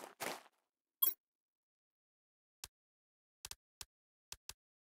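Short menu clicks sound a few times.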